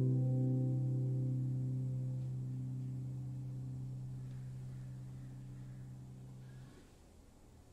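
A harp chord rings out and slowly fades away.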